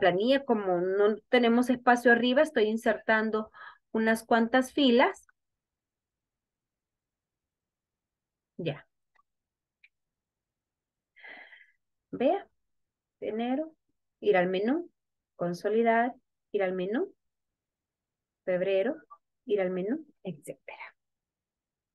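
A young woman talks calmly and clearly into a microphone, in short bursts with pauses.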